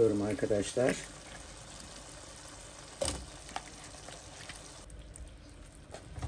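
Chunks of potato drop with soft plops into sauce.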